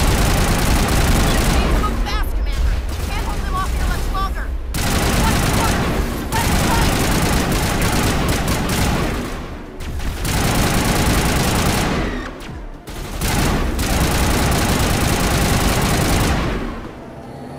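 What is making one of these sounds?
Energy guns fire in rapid bursts with loud crackling blasts.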